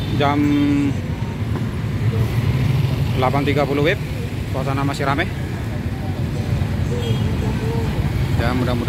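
A busy outdoor crowd chatters and murmurs nearby.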